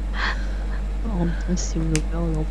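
A young woman speaks softly and close into a microphone.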